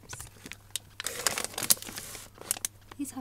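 A plastic package crinkles and rustles.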